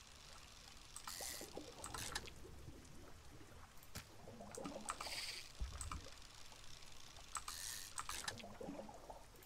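Short bright splashing chimes ring out a few times.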